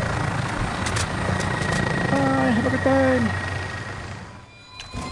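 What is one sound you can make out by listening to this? A helicopter's rotor thumps close by.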